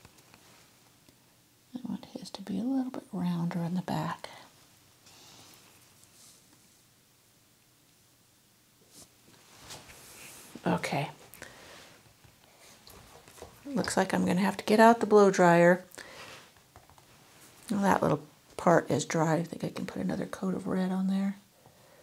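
A paintbrush softly dabs and strokes paint onto canvas.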